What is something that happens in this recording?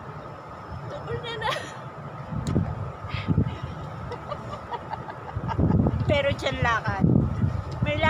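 A second woman exclaims and laughs loudly close by.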